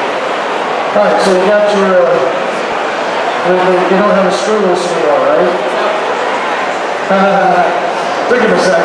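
A man speaks loudly with animation over a loudspeaker.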